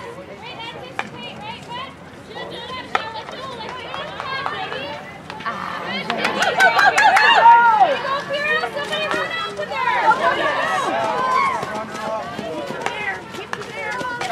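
Hockey sticks clack sharply against a ball.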